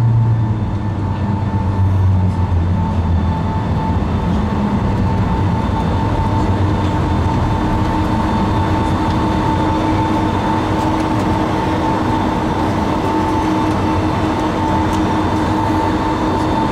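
Jet engines hum and whine steadily, heard from inside an airliner cabin.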